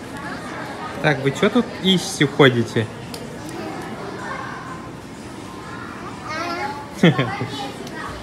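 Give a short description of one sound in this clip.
A young child talks nearby.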